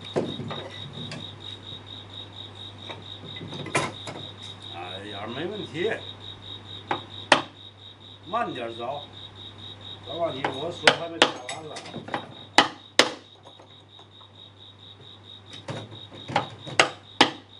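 A mallet taps sharply on a chisel in wood.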